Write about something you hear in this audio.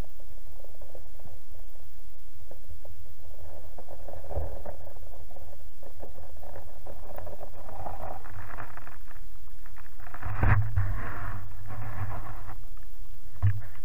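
Water gurgles and sloshes close by, muffled as if heard from underwater.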